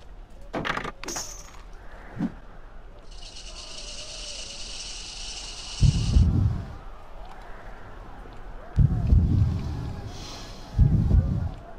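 A chain rattles and creaks as someone slides down it.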